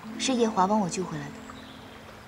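A young woman speaks calmly, close by.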